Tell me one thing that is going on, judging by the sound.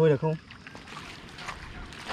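Footsteps crunch on a pebbly riverbank.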